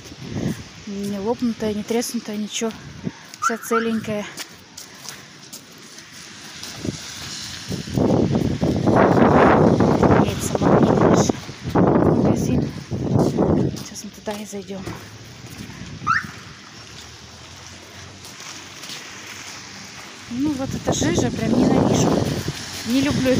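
Footsteps scuff on wet pavement.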